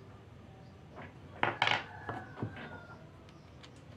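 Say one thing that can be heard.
Small metal parts click and clink together as they are handled.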